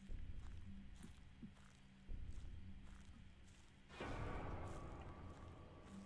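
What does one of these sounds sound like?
Footsteps crunch slowly over dry leaves and twigs.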